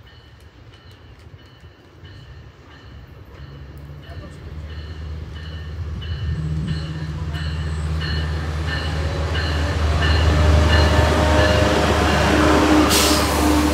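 A diesel train engine rumbles, growing louder as the train approaches.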